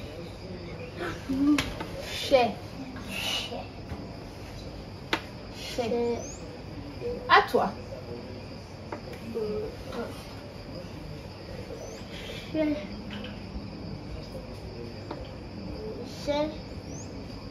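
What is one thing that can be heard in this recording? A young boy reads syllables aloud nearby.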